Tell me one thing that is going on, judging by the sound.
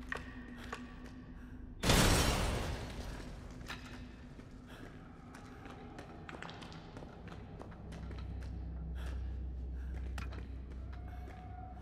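Footsteps scuff slowly over a gritty floor.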